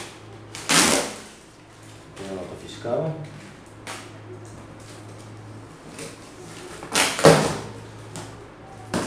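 Cardboard rustles and scrapes as hands handle a box.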